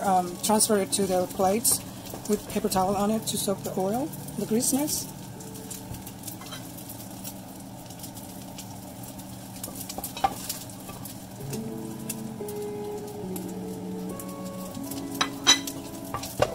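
A wooden spoon scrapes and stirs against the bottom of a pot.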